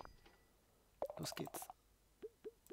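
A short bright jingle chimes.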